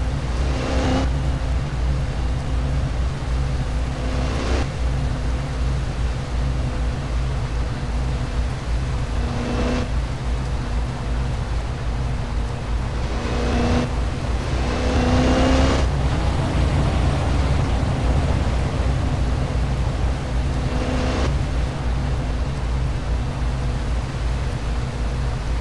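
A car engine hums steadily at low revs.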